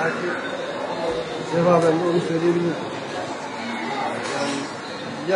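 A middle-aged man talks calmly and with animation, close by.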